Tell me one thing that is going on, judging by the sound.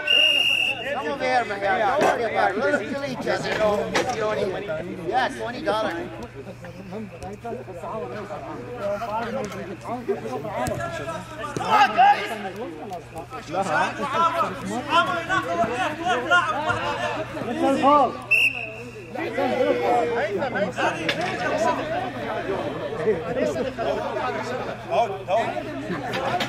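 Men shout and call out across an open pitch.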